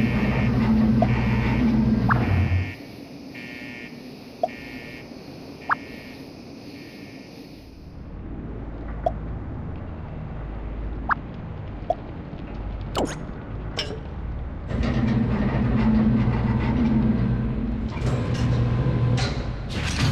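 Game music plays with a steady beat.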